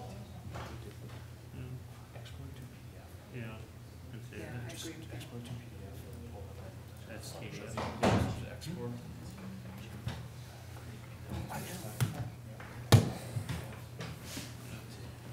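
Adults talk quietly at a distance.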